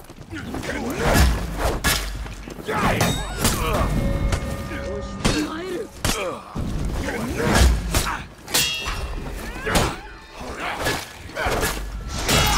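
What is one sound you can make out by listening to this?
Metal weapons clash and strike hard in a close fight.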